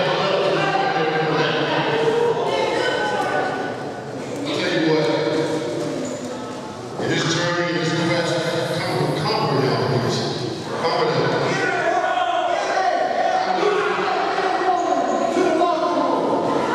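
A man announces loudly through a microphone in a large echoing hall.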